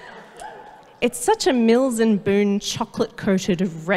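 A woman sings through a microphone in a clear, wavering voice.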